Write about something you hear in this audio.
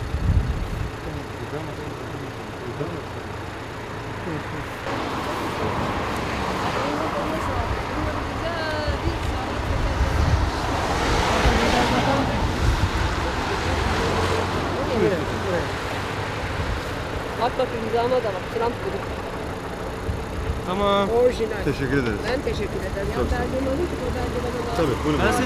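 Traffic rumbles steadily in the street.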